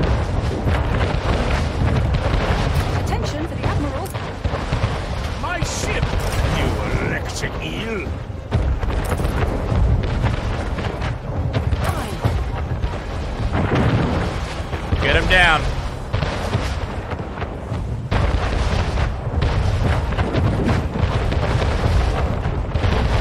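Cannons boom again and again in a sea battle.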